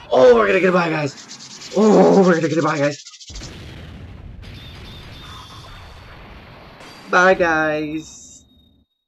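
A young man shouts excitedly into a microphone, close up.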